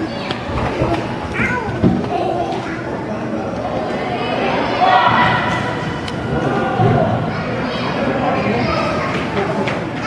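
Lacrosse sticks clack together.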